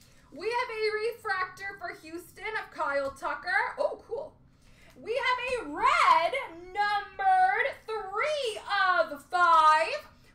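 Cards slide and shuffle between fingers.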